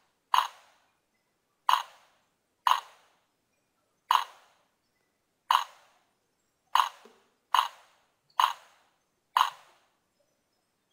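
A game on a phone plays a short ringing clank, again and again at an uneven pace.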